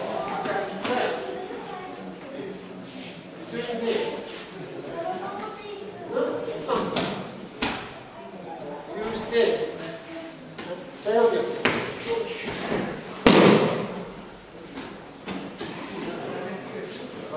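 An older man speaks calmly in an echoing hall.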